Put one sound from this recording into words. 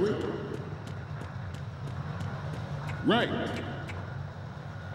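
Footsteps clang quickly on a metal walkway.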